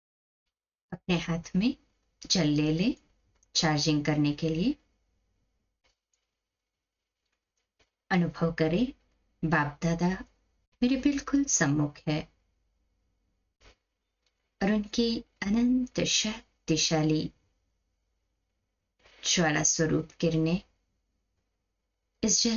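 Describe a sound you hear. A woman speaks slowly and calmly into a microphone, with long pauses.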